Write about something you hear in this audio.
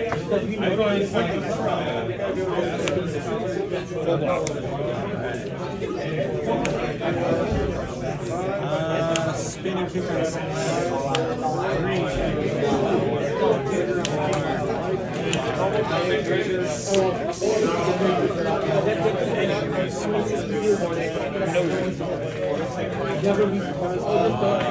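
Playing cards are placed and slid on a play mat with soft taps.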